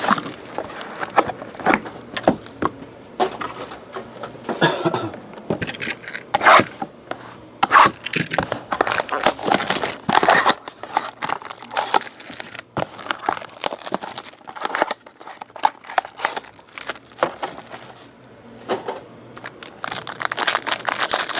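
Plastic wrap crinkles and rustles as hands tear it open.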